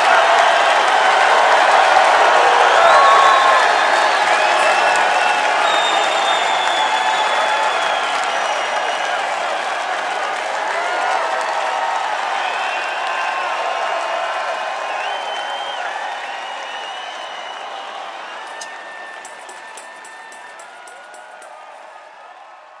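A large crowd cheers and screams loudly in a big echoing arena, slowly fading.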